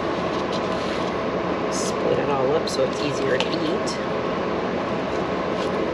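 A knife scrapes and taps against a plate while cutting soft cake.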